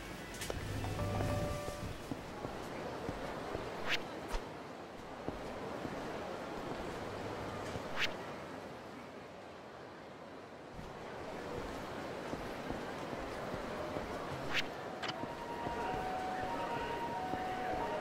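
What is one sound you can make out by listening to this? Footsteps tap steadily on pavement.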